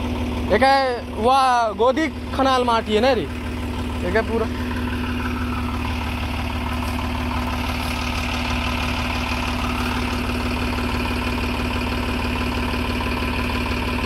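A tractor wheel churns and splashes through deep mud.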